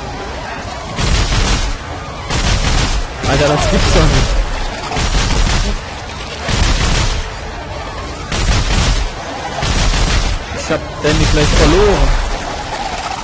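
A heavy gun fires in loud, rapid bursts.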